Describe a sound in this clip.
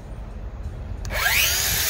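A circular saw whirs up to speed close by.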